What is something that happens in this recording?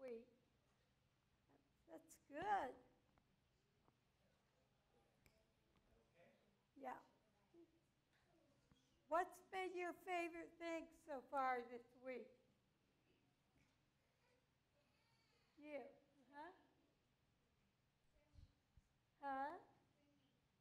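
A woman speaks in short bursts, some distance away in a large room.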